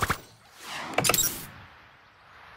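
Game sound effects crash and whoosh in quick bursts.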